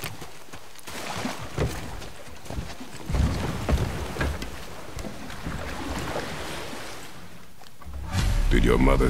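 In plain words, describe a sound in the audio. Water splashes and laps around a boat.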